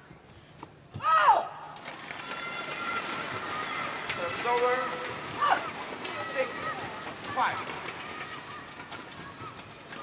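A crowd cheers and applauds in a large hall.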